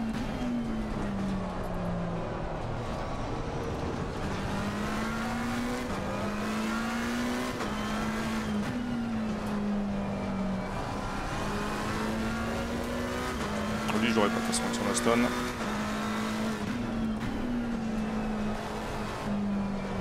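A racing car engine revs high, rising and dropping in pitch with each gear change.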